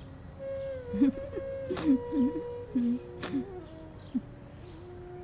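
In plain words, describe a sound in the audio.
A woman sobs softly close by.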